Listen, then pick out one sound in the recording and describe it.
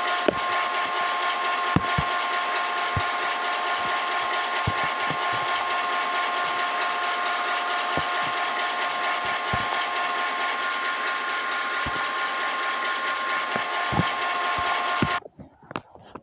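A diesel locomotive engine idles with a steady hum and whine.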